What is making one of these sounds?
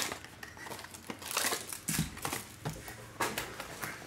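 A cardboard box scrapes on a table.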